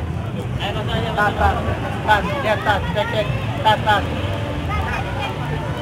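A motor scooter engine runs as the scooter rolls slowly through a crowd.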